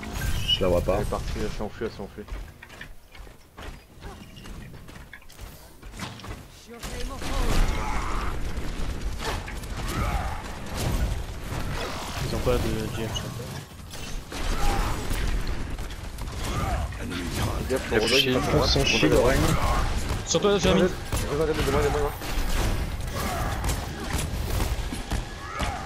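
A heavy hammer swings and clangs against an energy shield.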